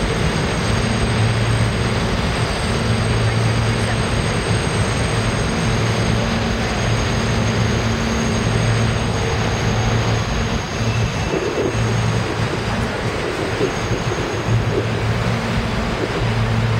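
A subway train rumbles and clatters steadily past on elevated tracks.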